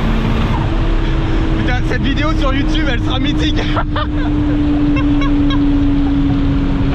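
A car engine hums steadily with a low drone inside the car.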